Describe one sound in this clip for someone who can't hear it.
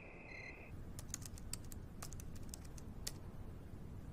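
A man types on a laptop keyboard with quick clicks.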